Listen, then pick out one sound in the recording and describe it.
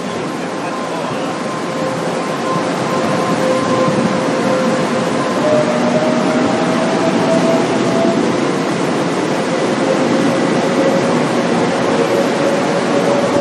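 Train wheels squeal faintly on the rails.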